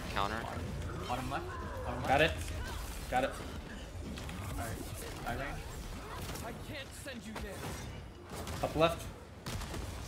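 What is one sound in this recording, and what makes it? Magic blasts and impacts burst in a game battle.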